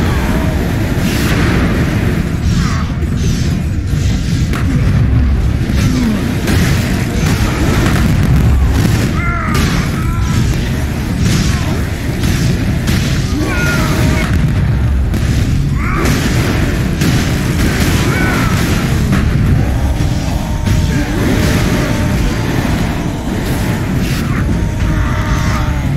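Heavy blows clang and thud in a rapid fight.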